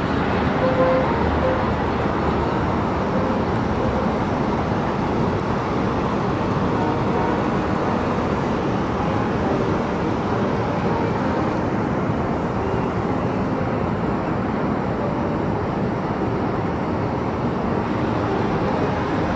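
City traffic hums steadily far below, outdoors.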